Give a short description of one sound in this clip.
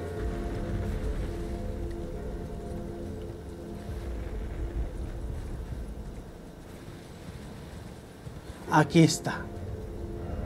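A horse gallops, its hooves thudding on soft ground.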